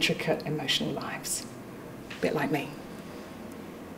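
A young woman speaks brightly into a microphone.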